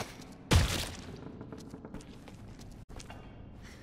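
Bare footsteps patter quickly on a tiled floor.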